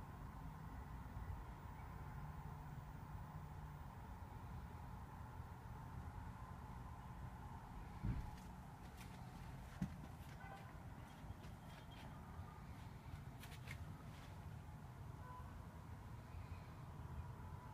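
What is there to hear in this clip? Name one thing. Distant city traffic hums faintly through a closed window.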